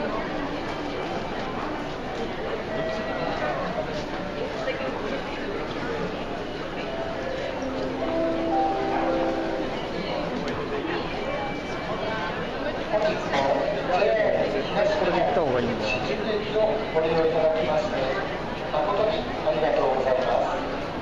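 Footsteps shuffle on a hard floor.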